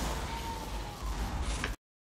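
A flamethrower roars and hisses.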